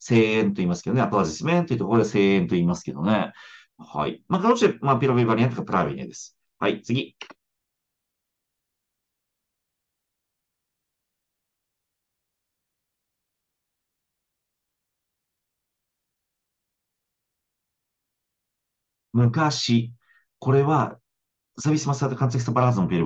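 A woman speaks calmly through a microphone in an online call.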